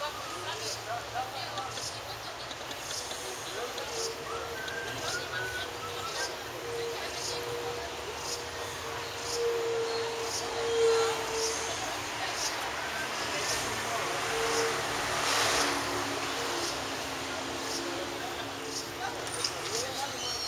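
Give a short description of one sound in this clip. Traffic hums along a town street below.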